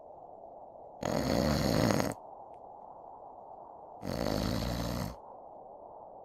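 A man sniffles in long, noisy breaths.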